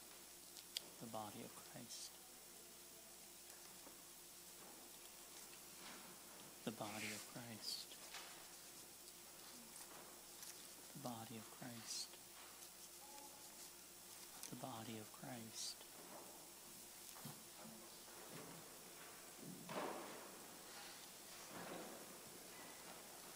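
A man speaks short, quiet phrases through a microphone in a large echoing hall.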